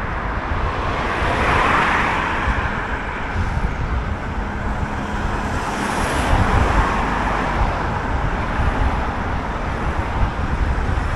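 Wind rumbles and buffets steadily outdoors.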